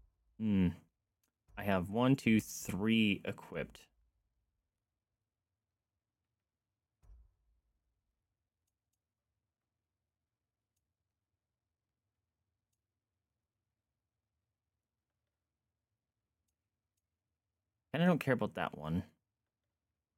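A young man speaks with animation into a close microphone, in short bursts with long pauses.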